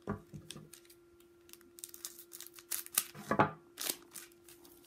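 Scissors snip through a wrapper.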